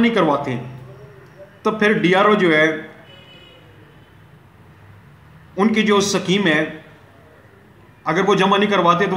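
A middle-aged man speaks calmly and clearly into a microphone, pausing between phrases.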